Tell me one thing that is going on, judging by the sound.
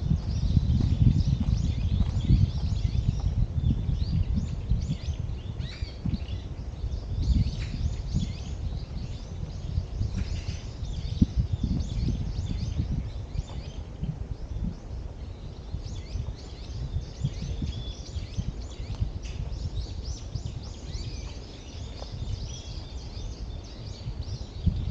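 Footsteps crunch steadily along a dirt path.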